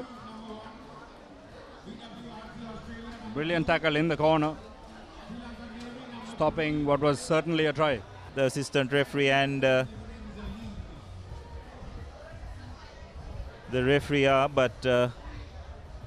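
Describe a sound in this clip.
A crowd of spectators murmurs in the background outdoors.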